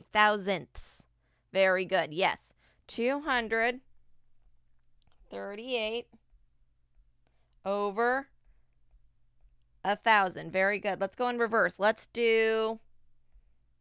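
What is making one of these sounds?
A woman speaks calmly and clearly into a microphone, pausing between phrases.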